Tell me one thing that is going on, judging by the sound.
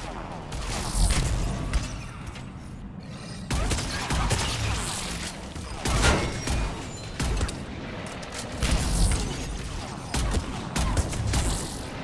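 A sniper rifle fires heavy single shots.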